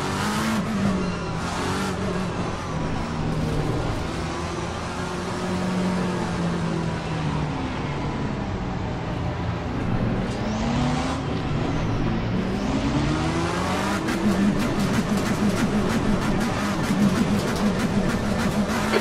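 A race car engine roars, rising and falling in pitch as it shifts gears.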